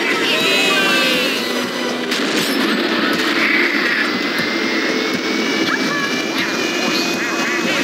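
Kart engines hum steadily.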